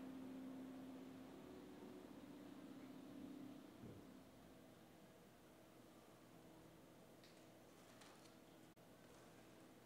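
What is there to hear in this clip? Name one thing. A grand piano plays low, sustained notes that ring in a large hall.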